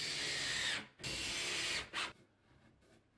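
A cordless drill drives a screw into plasterboard.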